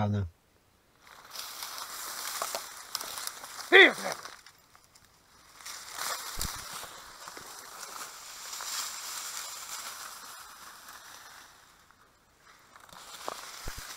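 Dry reeds rustle and crackle close by.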